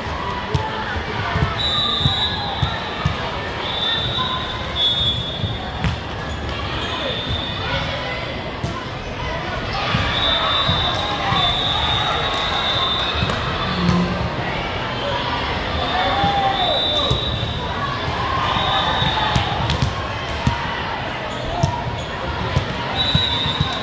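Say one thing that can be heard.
A volleyball thumps as players strike it.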